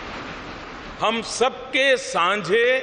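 An elderly man speaks slowly and deliberately into a microphone.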